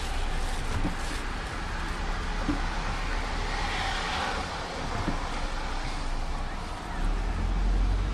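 A paper bag rustles and crinkles close by.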